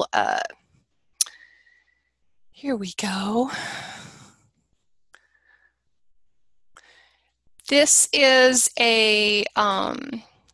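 A middle-aged woman speaks calmly through a headset microphone over an online call.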